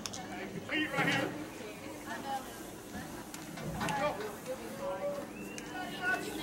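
Young girls and spectators talk and call out at a distance outdoors.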